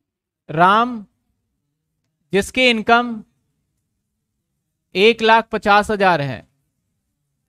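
A man speaks clearly through a headset microphone, in short phrases.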